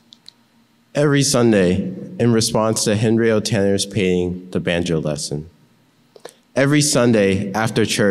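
A young man speaks clearly into a microphone.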